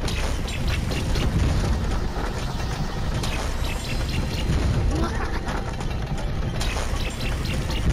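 Quick footsteps patter across wooden boards.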